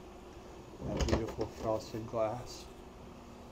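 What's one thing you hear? A wooden cabinet door swings shut with a click.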